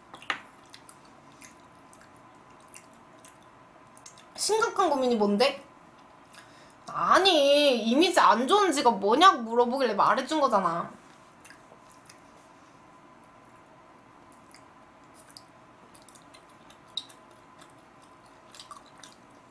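Chopsticks click softly against food and containers.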